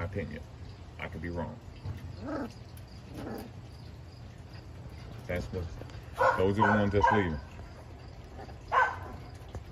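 Puppies whimper and yelp close by.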